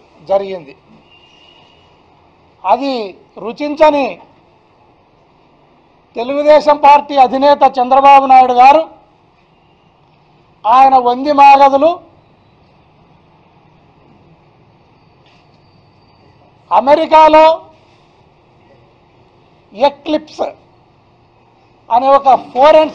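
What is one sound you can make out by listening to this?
A middle-aged man speaks forcefully into a microphone, in bursts with pauses.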